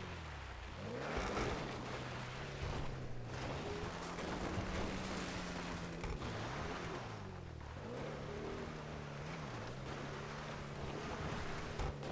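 Tyres skid and crunch over loose dirt.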